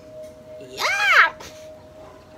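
A man shrieks with laughter close by.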